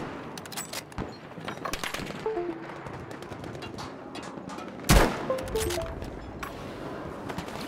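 A rifle bolt clicks and clacks as it is worked.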